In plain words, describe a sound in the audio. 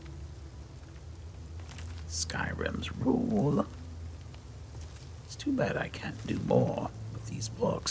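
A book's pages rustle as it opens.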